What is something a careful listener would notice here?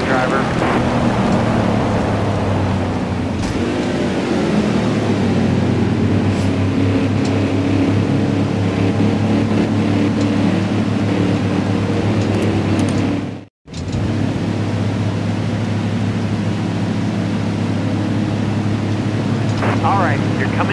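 A race car engine rumbles steadily at low speed.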